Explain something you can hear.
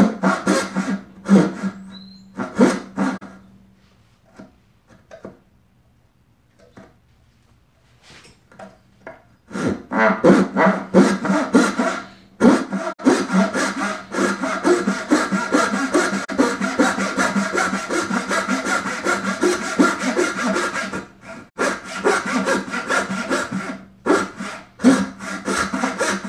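A hand saw cuts back and forth through wood.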